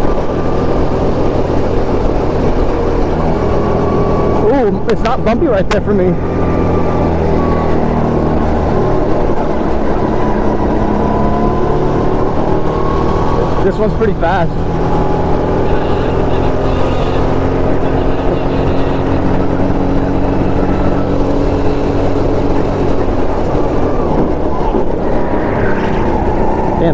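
A go-kart engine drones loudly and steadily up close, rising and falling in pitch.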